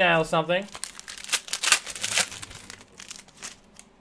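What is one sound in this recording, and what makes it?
A foil pack rips open.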